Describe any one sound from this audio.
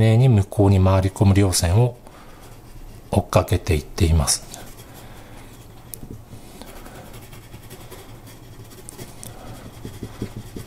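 A pencil scratches softly on paper with quick hatching strokes.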